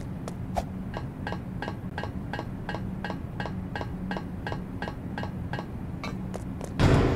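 Steps tap quickly and evenly on a ladder.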